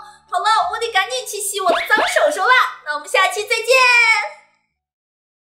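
A young woman speaks animatedly and playfully, close to a microphone.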